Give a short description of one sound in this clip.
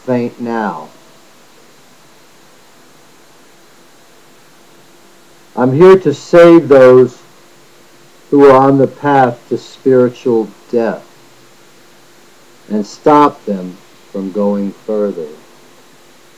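A middle-aged man speaks calmly and close to the microphone, with pauses.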